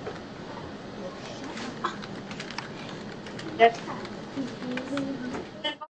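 Young girls talk and laugh over an online video call.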